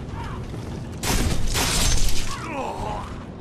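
Swords clash with sharp metallic hits.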